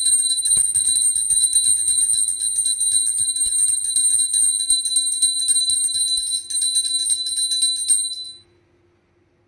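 A small hand bell rings rapidly and steadily.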